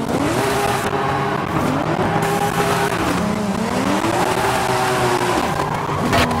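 A car engine revs hard, rising and falling through the gears.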